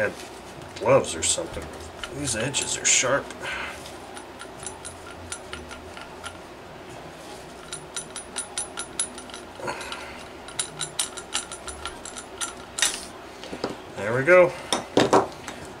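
A cloth rubs and rustles against metal.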